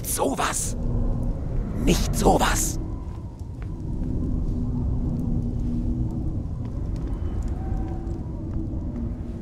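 A storm rumbles low and steady outside.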